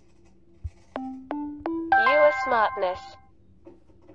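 Bright chiming notes rise in quick steps.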